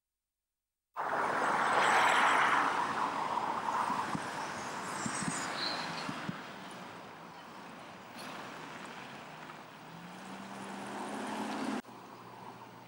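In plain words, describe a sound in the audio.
Traffic hums along a busy road.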